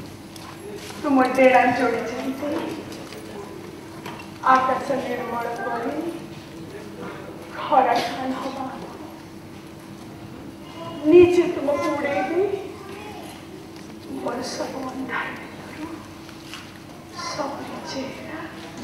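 A woman declaims expressively in bursts, in a reverberant hall.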